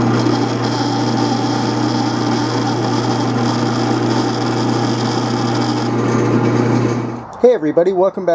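A metal lathe hums steadily as a cutting tool shaves metal.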